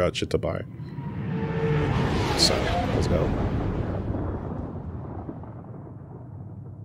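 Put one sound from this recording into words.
A deep rumble swells and slowly fades.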